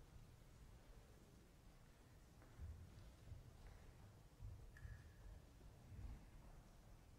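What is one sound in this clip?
Footsteps thud softly across a wooden floor in a quiet, large room.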